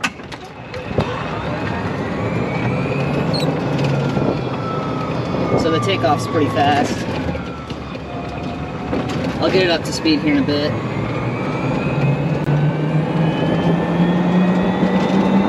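An electric motor whines, rising in pitch as a cart speeds up.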